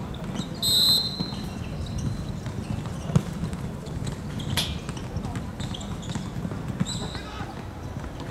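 Young men shout to each other across an open court.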